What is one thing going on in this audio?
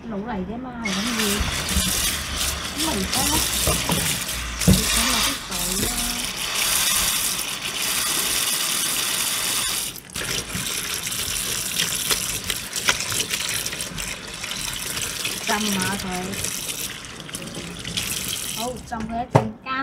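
Tap water pours into a plastic colander of leafy greens in a steel sink.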